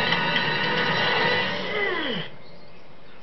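Game music plays loudly.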